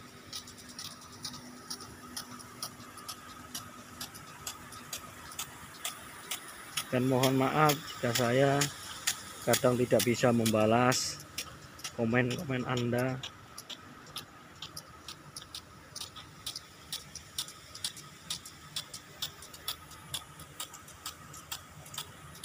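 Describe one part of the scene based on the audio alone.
Lawn sprinklers tick rapidly and steadily as they spray water.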